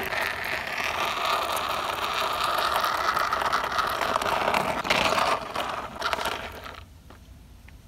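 Small plastic wheels roll and scrape over rough concrete.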